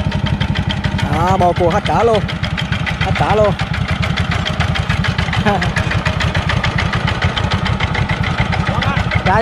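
A small diesel engine chugs steadily and close by.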